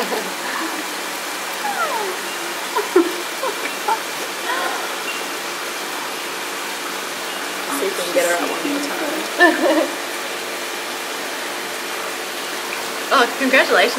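Water sloshes as a person wades through a shallow pool.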